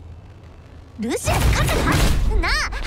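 A heavy weapon swings through the air with a whoosh.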